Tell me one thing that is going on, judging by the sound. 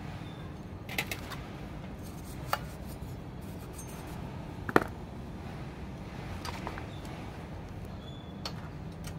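Plastic parts click and clack as hands work on a printer mechanism.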